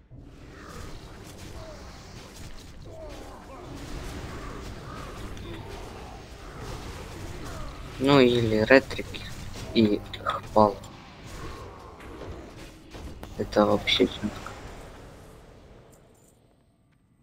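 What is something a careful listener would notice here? Spell effects crackle and clash in a fight.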